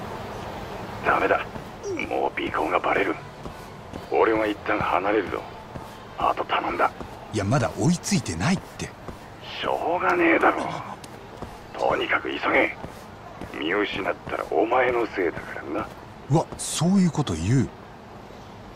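A young man talks urgently on a phone, close by.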